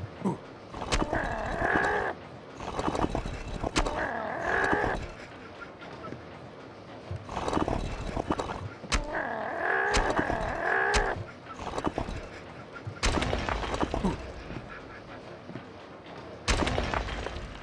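Sharp thumps and smacks ring out in a scuffle.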